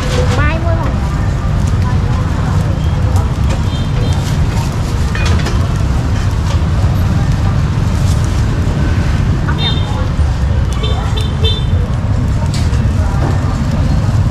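A plastic bag rustles close by.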